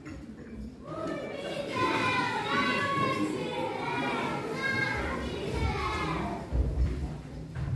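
A child speaks loudly on a stage in a large room.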